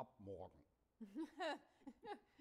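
A young woman speaks softly with a laugh.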